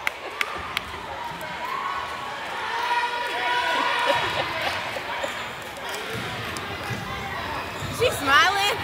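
A crowd of spectators talks and calls out nearby.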